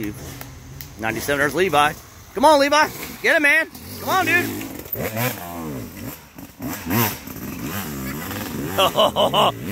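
Dirt bikes ride past, their engines roaring.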